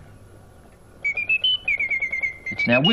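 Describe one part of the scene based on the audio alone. A small bird chirps and twitters in quick, high notes.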